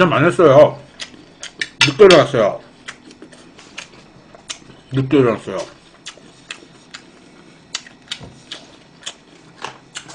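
Chopsticks click against dishes.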